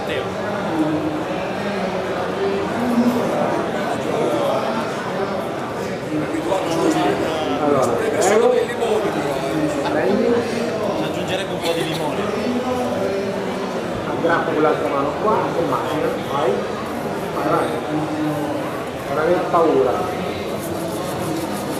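A man speaks into a microphone with animation, heard through loudspeakers in a large echoing hall.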